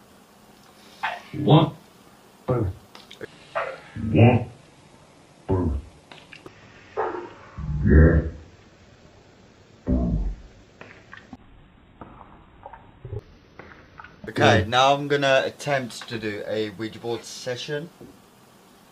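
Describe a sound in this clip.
A young man speaks in short, halting bursts, his voice slowed and warped.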